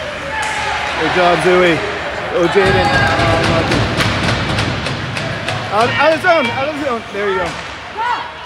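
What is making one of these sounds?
Adult spectators shout and cheer nearby.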